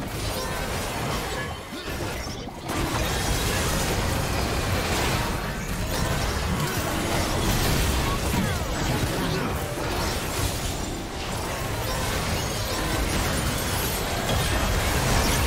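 Magic blasts and clashing effects crackle and boom in a busy video game battle.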